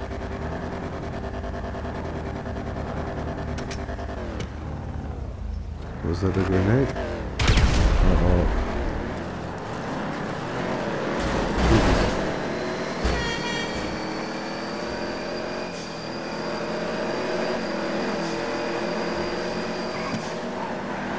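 Racing car engines roar and rev up and down.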